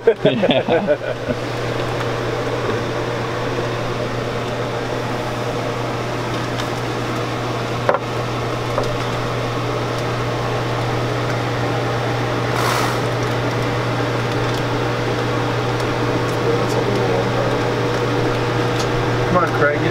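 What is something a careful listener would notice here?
A conveyor machine hums steadily close by.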